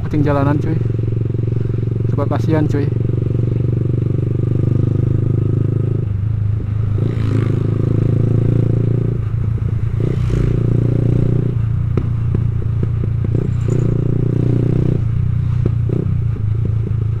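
A motorbike engine hums steadily up close as the bike rides along.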